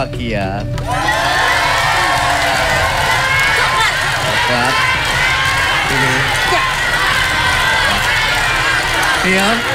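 A studio audience cheers and applauds loudly.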